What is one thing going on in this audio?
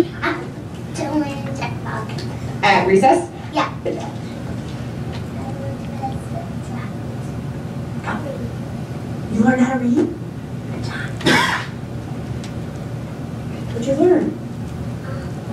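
A young child speaks haltingly through a loudspeaker in a large room.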